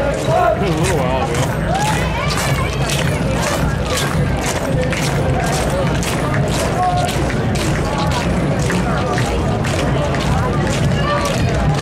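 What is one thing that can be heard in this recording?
A crowd of onlookers chatters and calls out nearby.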